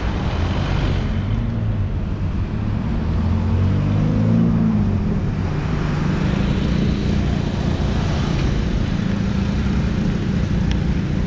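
Car engines hum and tyres roll past on a busy street.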